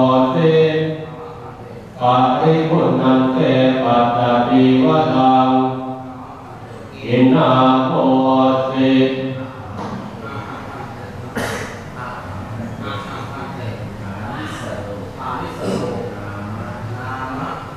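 A group of men chant together in low, steady voices in an echoing hall.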